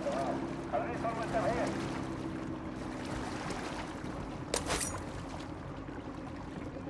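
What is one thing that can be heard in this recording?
Water sloshes and splashes as a swimmer moves through it.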